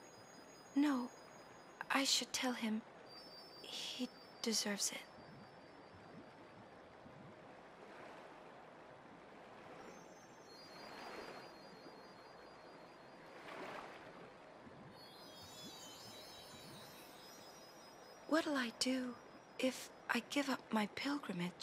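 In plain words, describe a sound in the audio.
A young woman speaks softly and gently.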